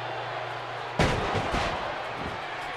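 A body thuds onto a wrestling mat.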